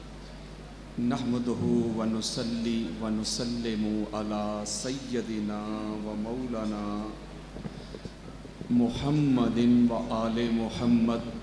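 A man speaks and chants loudly through a microphone over loudspeakers.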